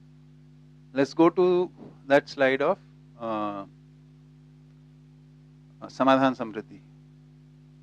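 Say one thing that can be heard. A middle-aged man speaks calmly in short bursts through a microphone.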